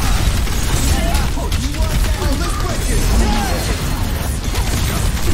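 Rapid gunfire and blasts crackle loudly.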